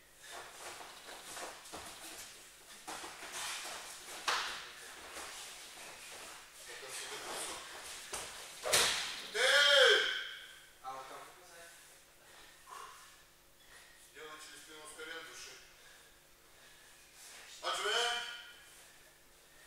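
Young boys talk and call out at a distance in a large echoing hall.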